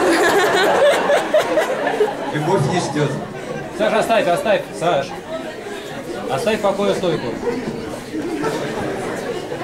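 A young man sings into a microphone in an echoing hall.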